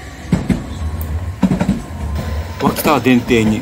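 A tram rumbles past.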